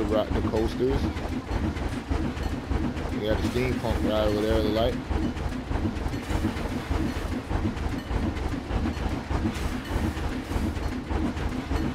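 A steam locomotive chugs steadily along the tracks.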